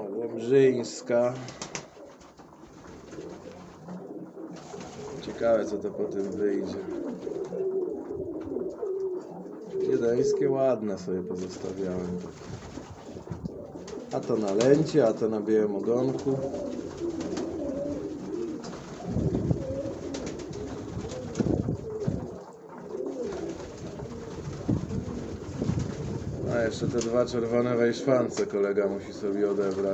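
Pigeons coo.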